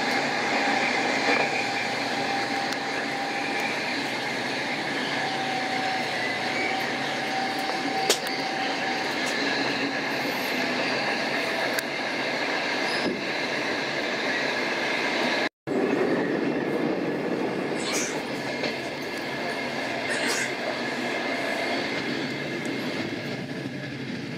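A passenger train rumbles along the rails, heard from inside a carriage.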